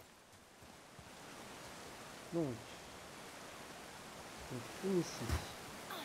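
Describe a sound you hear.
A waterfall rushes and splashes nearby.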